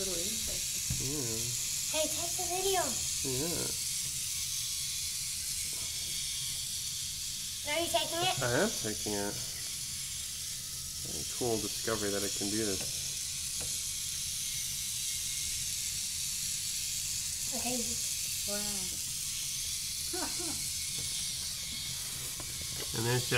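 A small plastic toy car rolls around on a smooth tabletop.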